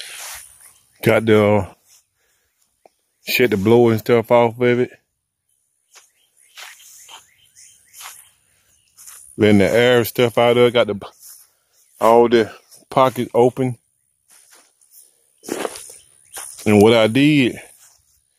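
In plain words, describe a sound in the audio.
A man speaks calmly close to the microphone, in short bursts with pauses.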